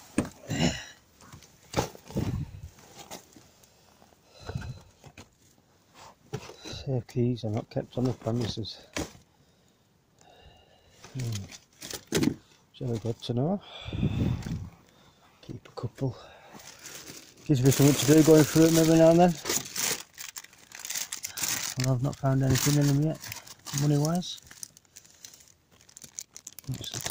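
Plastic wrapping crinkles and rustles as it is handled up close.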